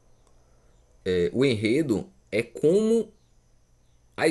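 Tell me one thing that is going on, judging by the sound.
A man speaks close to a microphone in a calm voice.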